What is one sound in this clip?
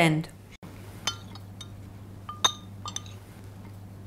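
A spoon clinks lightly against a bowl.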